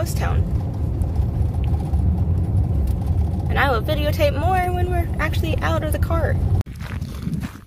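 A car's engine and tyres rumble steadily on a road.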